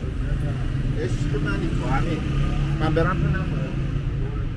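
A young man speaks nearby outdoors.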